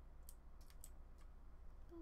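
A pickaxe taps against stone in quick, sharp knocks.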